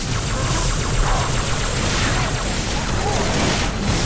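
Plasma guns fire in rapid bursts.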